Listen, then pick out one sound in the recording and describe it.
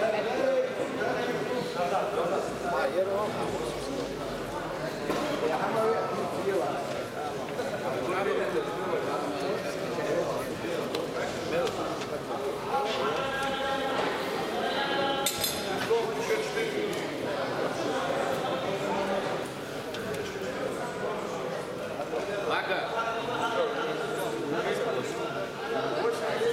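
A crowd of men and women chatters throughout a large echoing hall.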